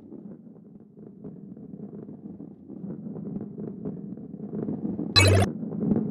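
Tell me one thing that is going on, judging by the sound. A ball rolls and rumbles along a wooden track.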